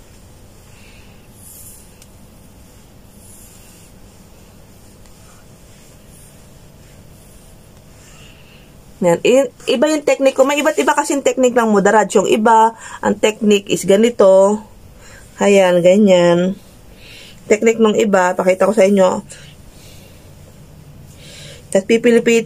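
A comb rasps through hair.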